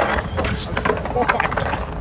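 A skateboard clatters as it falls onto concrete.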